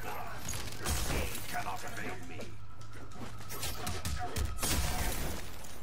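Ice bursts and shatters with a crackling crash.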